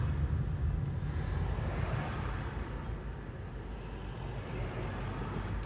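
Traffic hums along the street outside.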